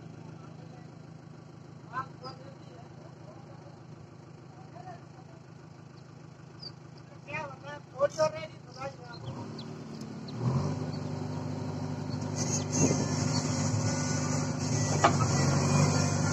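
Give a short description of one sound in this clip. A backhoe's diesel engine rumbles steadily and revs up louder.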